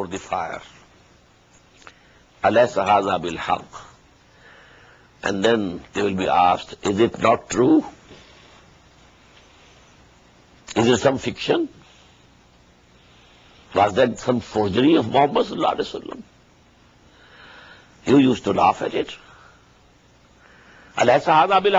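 An elderly man speaks calmly into a close microphone, with pauses.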